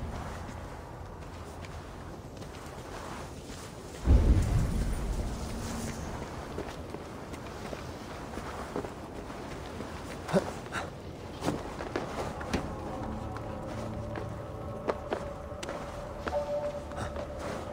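Footsteps thud and scrape on stone.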